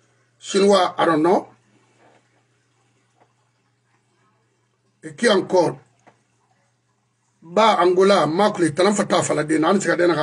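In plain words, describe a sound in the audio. An older man speaks with animation close to a microphone, in short bursts with pauses.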